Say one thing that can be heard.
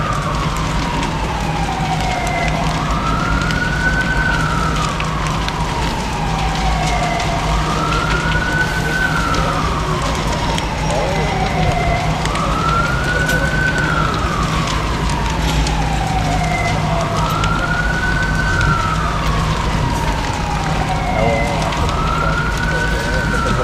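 A fire engine siren wails nearby, slowly rising and falling.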